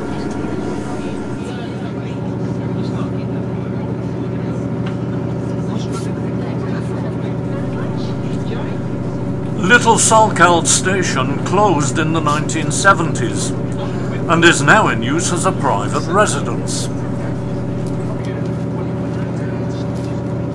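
Train wheels rumble on the tracks.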